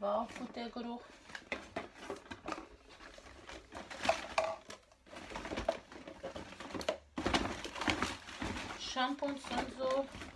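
Plastic bottles clatter and rustle as they are handled.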